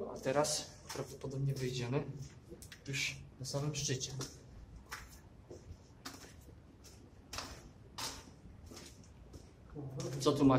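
Footsteps crunch on a gritty floor in a narrow passage.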